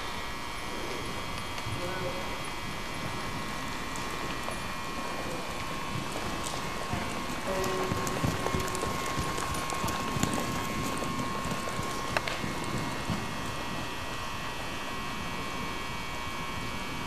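A horse's hooves thud softly on loose dirt at a trot.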